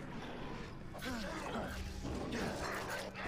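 A heavy blow lands with a loud thump.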